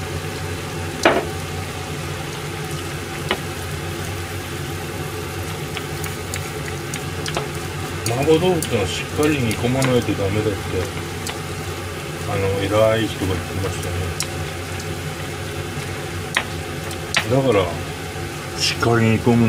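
Sauce bubbles and sizzles steadily in a pan.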